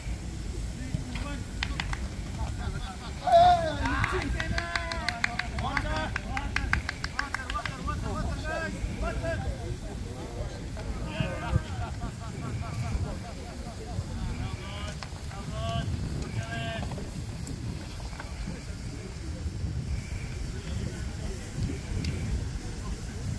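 Young men call out and chat outdoors, some distance away.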